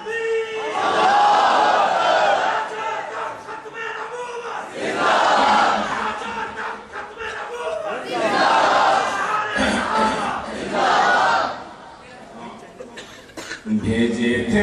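A man chants loudly and with feeling into a microphone, echoing in a large hall.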